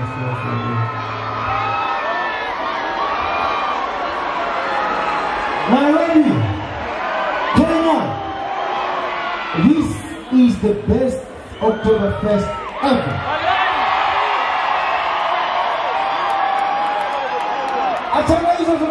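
A man sings and shouts into a microphone over loudspeakers.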